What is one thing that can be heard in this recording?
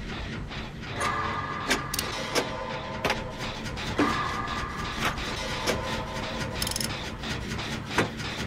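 A metal machine clanks and rattles as it is worked on.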